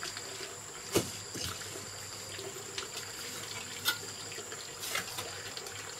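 Bricks clink as they are set down.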